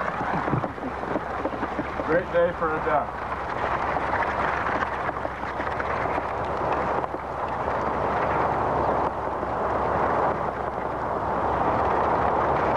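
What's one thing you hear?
A quad bike engine roars close by as it rides over rough ground.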